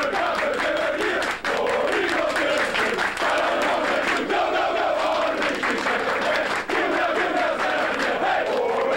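Hands clap in rhythm.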